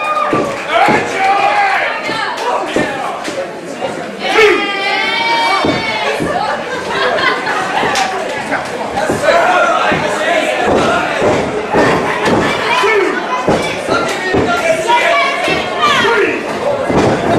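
A small crowd chatters and calls out in an echoing hall.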